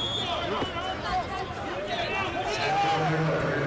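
Wrestlers thud and scuffle on a mat.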